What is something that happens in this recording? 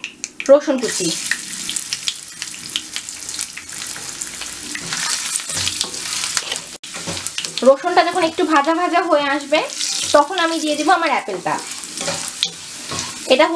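Hot oil and sauce sizzle loudly in a pan.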